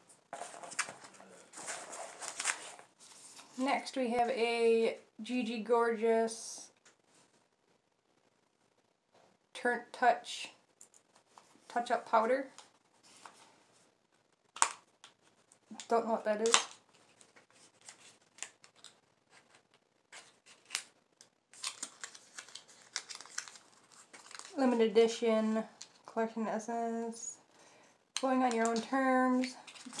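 A woman talks calmly close to a microphone, in short phrases with pauses.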